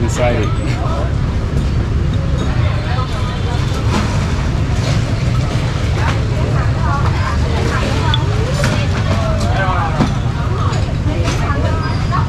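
A spoon clinks against a clay pot.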